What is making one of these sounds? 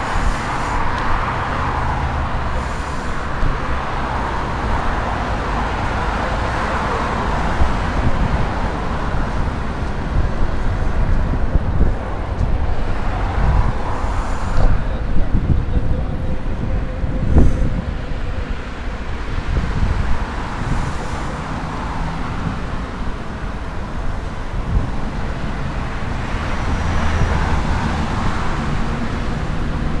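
Cars pass by on a nearby road.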